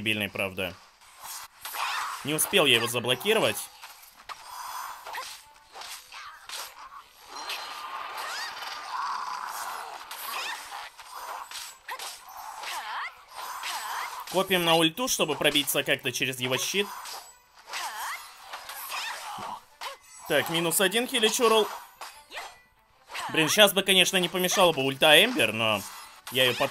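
Swords slash and clash in a fight.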